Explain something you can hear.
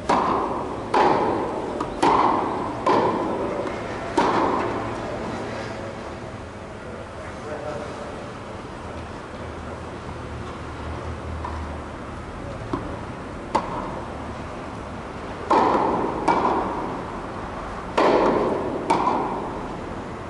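Tennis balls are struck hard with rackets in a large echoing hall.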